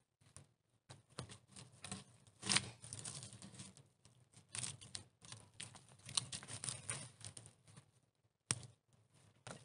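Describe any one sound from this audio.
A heavy log rolls and thumps against wood.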